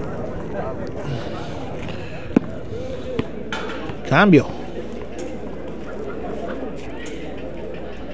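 A ball thuds on a concrete court.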